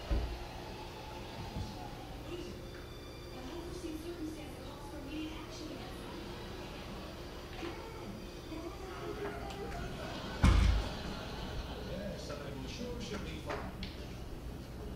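Voices play from a television loudspeaker.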